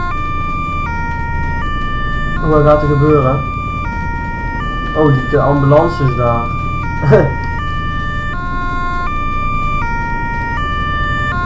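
A two-tone police siren wails steadily close by.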